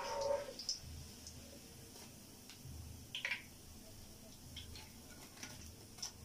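A metal strainer clinks against a pan.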